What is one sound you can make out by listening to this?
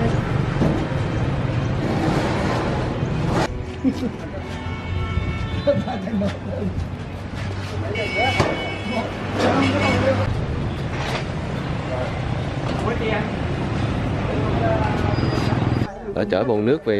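Traffic hums along a street outdoors.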